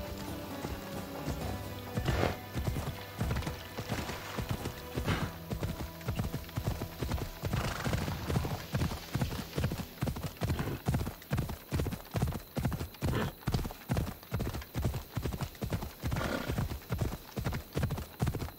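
A horse's hooves pound the ground in a steady gallop.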